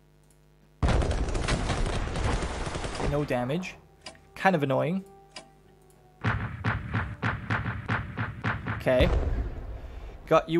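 Gunfire and explosions rattle in a short battle.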